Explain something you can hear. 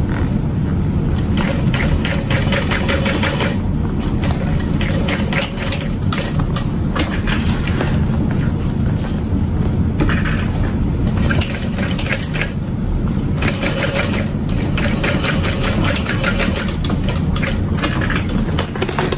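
A sewing machine whirs and stitches in rapid bursts.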